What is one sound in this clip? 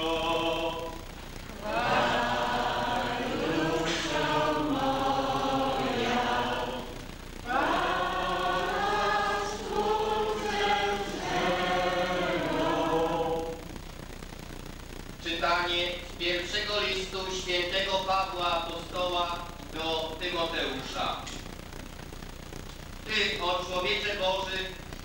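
A crowd of men and women sings together in a large echoing hall.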